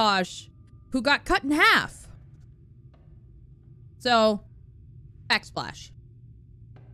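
A young woman speaks with animation in short bursts, close to a microphone.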